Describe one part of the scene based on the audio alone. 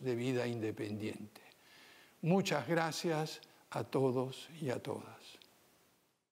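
An elderly man speaks calmly and formally into a microphone.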